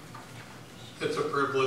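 A man begins speaking through a microphone.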